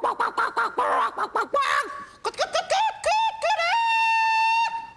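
A man speaks on a stage through a small microphone.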